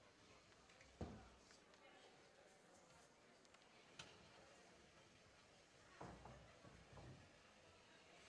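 Chairs knock on a stage in a large hall.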